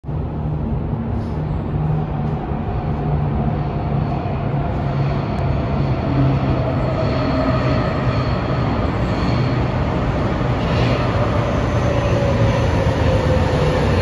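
A subway train rumbles through a tunnel and pulls into an echoing station.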